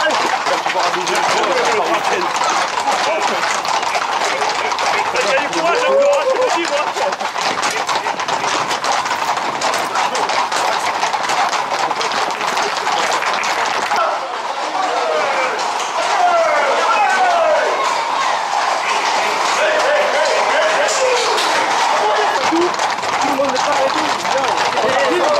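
Hooves of a group of horses clatter on asphalt.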